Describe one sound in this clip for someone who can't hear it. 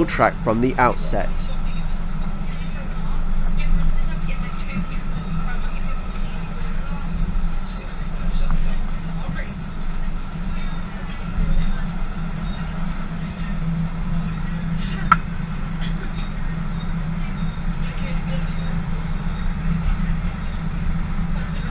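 A train rumbles steadily along the rails.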